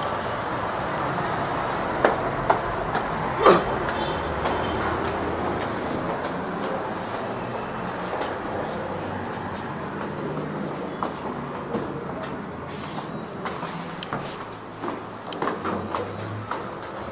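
Footsteps thud on stairs.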